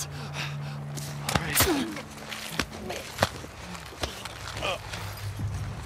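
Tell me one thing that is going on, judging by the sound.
Bodies thump and scuffle in a struggle.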